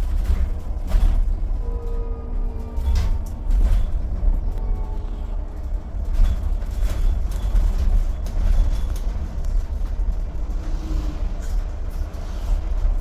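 The bus interior rattles and clunks as it drives.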